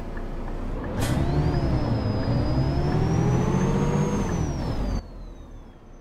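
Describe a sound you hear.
A bus engine revs up loudly as the bus pulls away, then drops off sharply.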